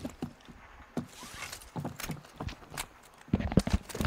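Footsteps thud on a roof.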